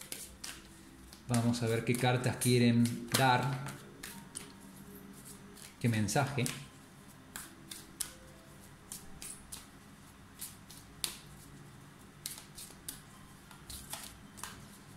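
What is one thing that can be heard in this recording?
Playing cards shuffle and flick against one another.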